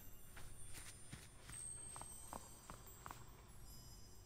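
Light footsteps patter on stone.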